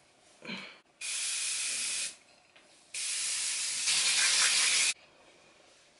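A spray can hisses in bursts.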